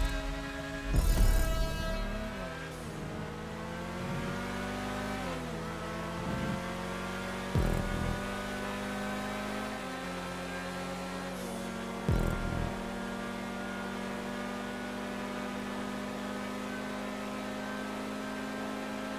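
A car engine roars steadily, its pitch dropping with each gear change.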